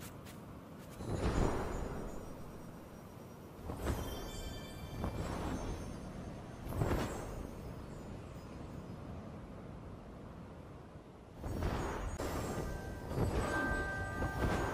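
Wind rushes past in swelling whooshes during a fast glide.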